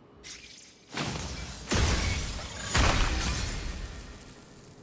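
A loud explosion bursts and rumbles, then slowly fades.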